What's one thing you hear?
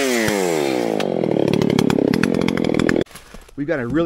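A chainsaw engine runs loudly and then winds down before cutting off.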